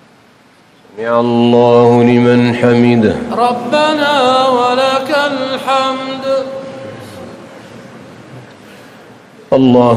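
A man chants a prayer through loudspeakers in a large echoing hall.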